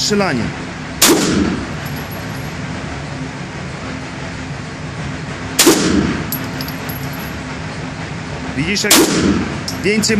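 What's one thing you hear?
A pistol fires loud, sharp shots that echo in an enclosed space.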